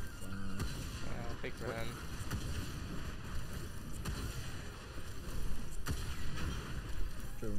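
Gunshots and blasts crack in quick bursts.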